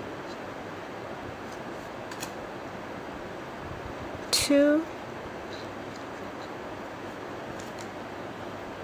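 A metal crochet hook clicks softly against yarn.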